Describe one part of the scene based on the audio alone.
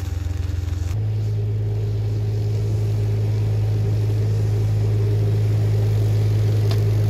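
A ride-on mower engine drones nearby.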